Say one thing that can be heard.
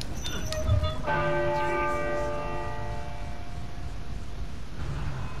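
A large bell rings out loudly and slowly fades.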